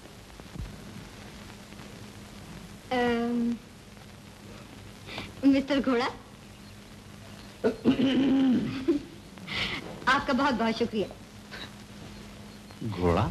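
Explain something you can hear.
A young woman speaks cheerfully, close by.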